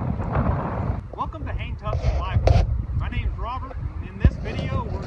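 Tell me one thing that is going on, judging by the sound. A man speaks close by outdoors in wind.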